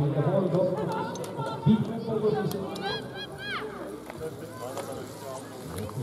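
Bicycle tyres roll over grass as riders pass close by.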